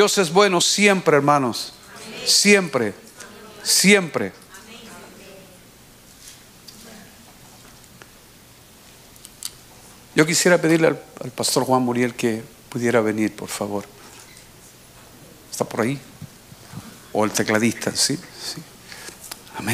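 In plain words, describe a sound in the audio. An older man speaks slowly and deliberately into a microphone, with pauses, in a room with a slight echo.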